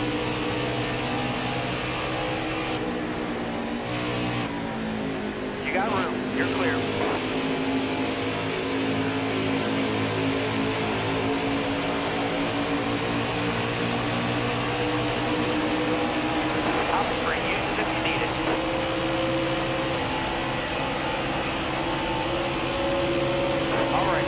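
Other race cars roar past close by.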